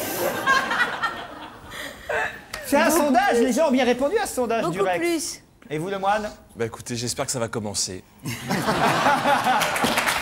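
A studio audience laughs.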